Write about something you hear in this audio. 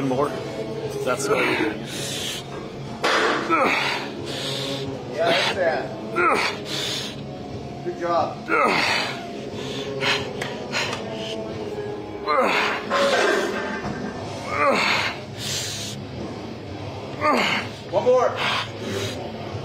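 A man grunts and groans loudly with strain.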